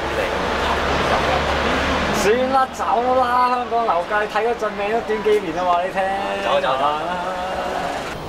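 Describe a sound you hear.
A young man laughs up close.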